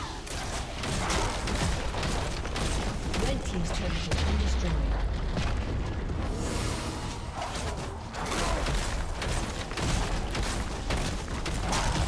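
Sharp magic blasts and hits crackle rapidly in a busy fight.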